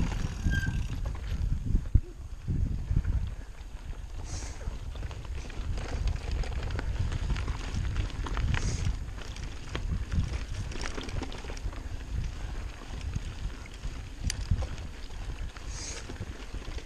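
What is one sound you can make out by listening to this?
Wind rumbles and buffets against a microphone.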